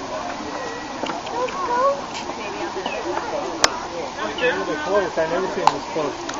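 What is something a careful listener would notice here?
Hooves clop softly on rock as a goat walks.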